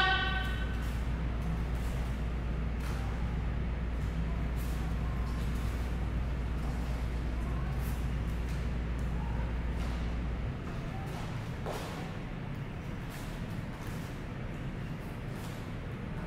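Bare feet thump and slide on a mat.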